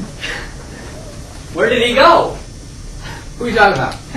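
A man speaks calmly to a teenage boy.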